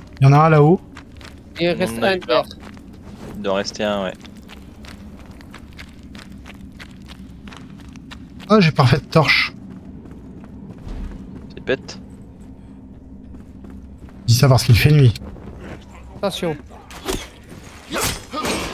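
Footsteps tread on dirt and wooden planks.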